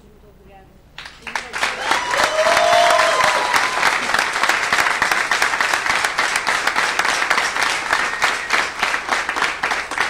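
A folk group plays lively music with a fast, steady beat.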